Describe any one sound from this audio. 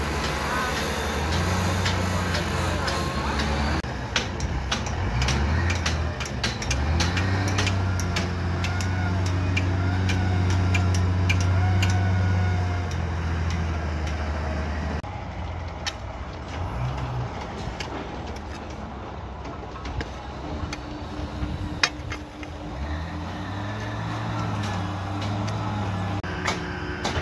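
A loader's diesel engine rumbles and revs nearby.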